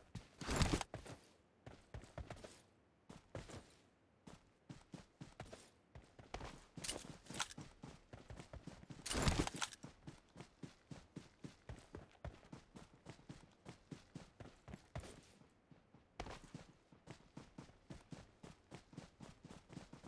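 Footsteps run quickly over dry grass.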